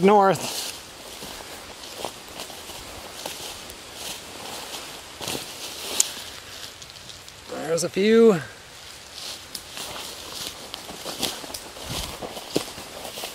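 Footsteps rustle through leafy undergrowth and brush against plants.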